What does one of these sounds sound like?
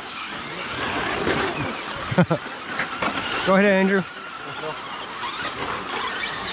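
Small electric motors whine as toy cars race.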